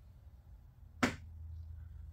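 A switch clicks once.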